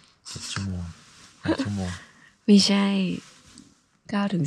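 A young woman laughs close up.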